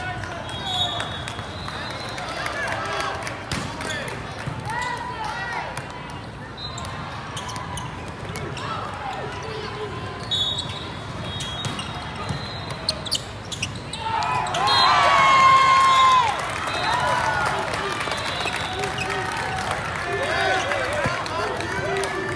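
Young boys shout and call out in a large echoing hall.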